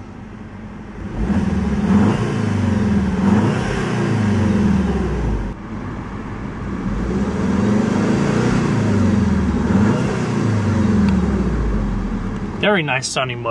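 A car engine idles and revs up repeatedly.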